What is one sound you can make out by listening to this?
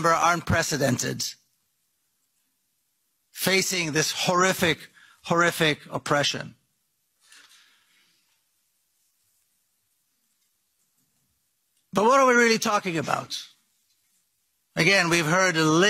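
A middle-aged man speaks emphatically into a microphone, with pauses between phrases.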